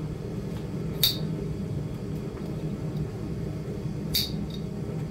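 Metal tools clink together briefly.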